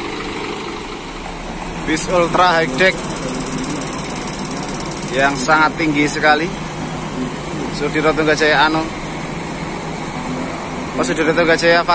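A bus engine rumbles steadily as the bus pulls slowly away.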